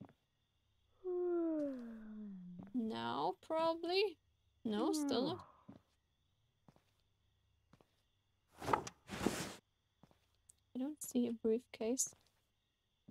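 A young woman speaks softly and with animation close to a microphone.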